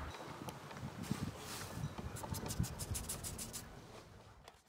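Seeds patter and rustle as a hand scatters them.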